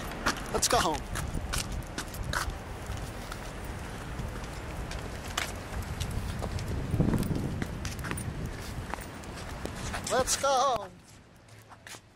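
Footsteps tap on a wet pavement.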